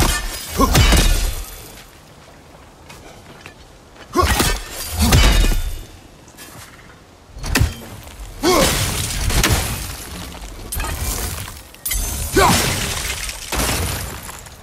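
Heavy weapons whoosh and strike with thuds.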